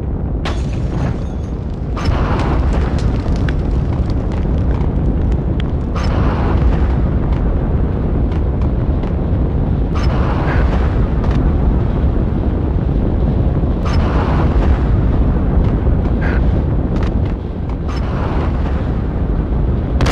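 Flames roar steadily nearby.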